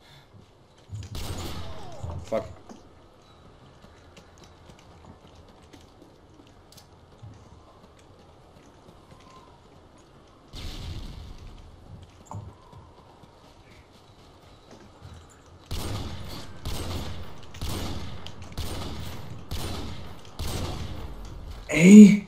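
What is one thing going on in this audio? A rifle fires loud, sharp shots again and again.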